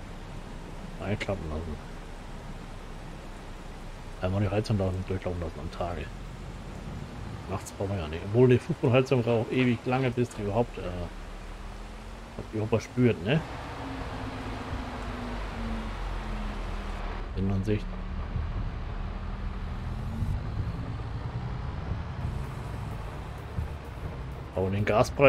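A man talks calmly and casually into a close microphone.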